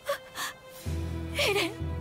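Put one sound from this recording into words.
A young woman speaks in a pleading voice.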